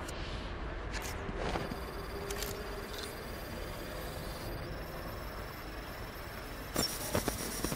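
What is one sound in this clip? An electronic device beeps as keys are entered.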